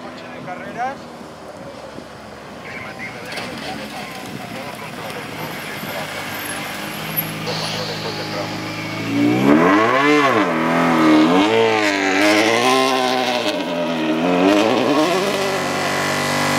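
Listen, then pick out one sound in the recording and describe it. A rally car engine roars closer, revving up and down hard as it speeds past.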